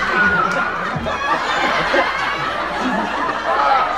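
A middle-aged man laughs heartily nearby.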